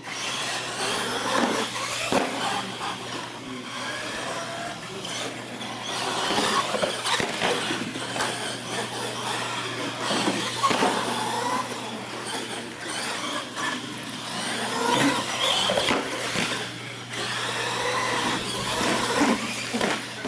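Small electric motors whine as toy trucks race across a hard floor.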